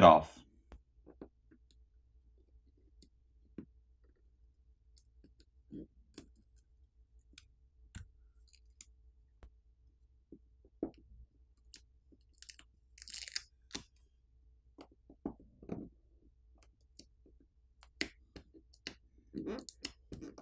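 Fingers tap and scrape on a phone's plastic parts, with small clicks and rustles.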